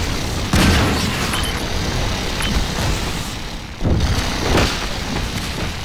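Shotgun blasts boom loudly and echo.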